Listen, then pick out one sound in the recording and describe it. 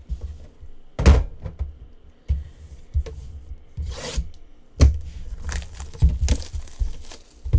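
Plastic wrap rustles and crinkles as it is torn off a box.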